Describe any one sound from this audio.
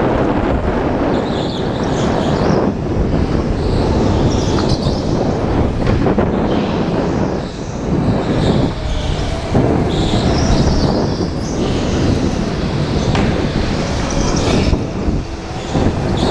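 Tyres squeal on a smooth floor through the turns.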